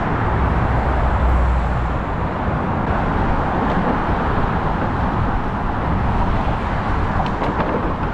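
Footsteps of people walking pass close by.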